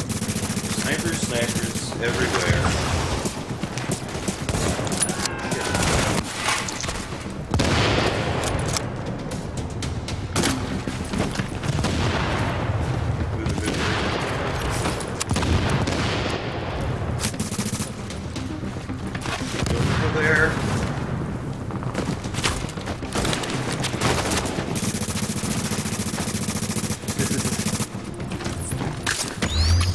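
Gunfire crackles in short bursts.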